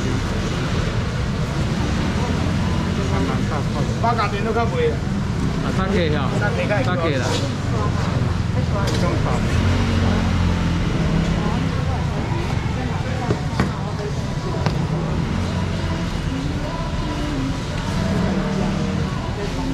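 Several men and women chatter nearby.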